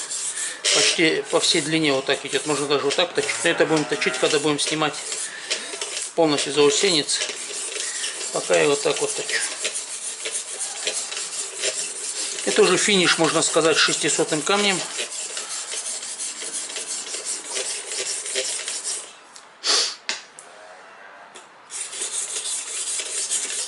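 A sharpening stone scrapes back and forth along a knife blade.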